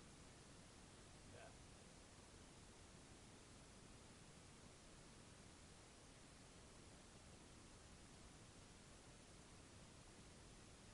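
Water laps softly against a kayak's hull.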